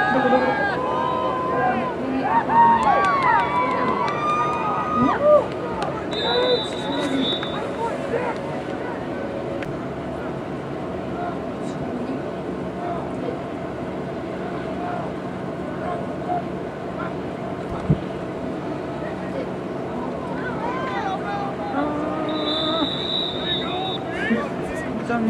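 Young men shout and cheer in the open air.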